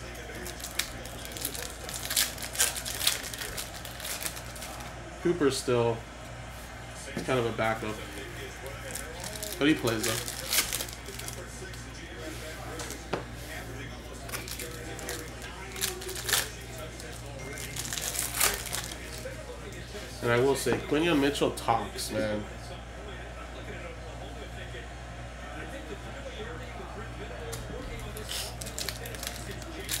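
Cards shuffle and click between fingers.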